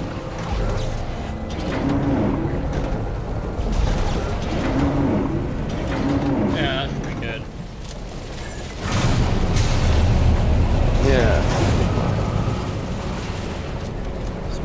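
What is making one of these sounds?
A machine hums with a low, steady drone.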